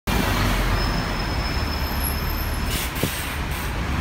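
Street traffic hums outdoors.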